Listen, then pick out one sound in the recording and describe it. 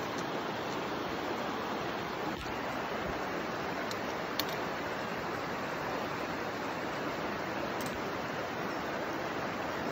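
A shallow creek rushes and burbles over rocks.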